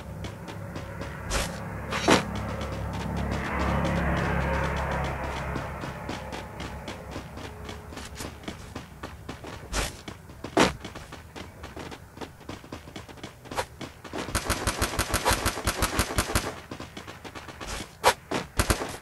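Footsteps patter quickly as a figure runs.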